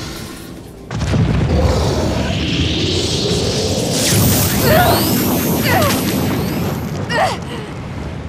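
A huge explosion booms and rumbles.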